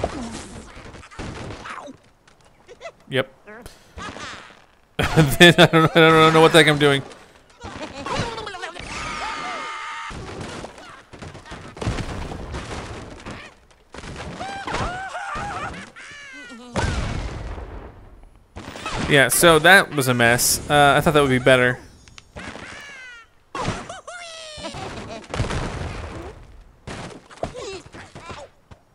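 Wooden blocks crash and clatter as a structure collapses.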